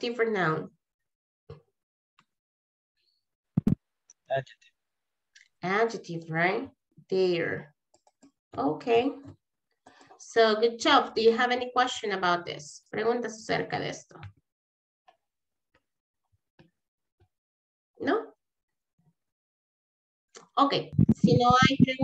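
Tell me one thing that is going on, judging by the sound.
A young woman speaks calmly through an online call, with pauses.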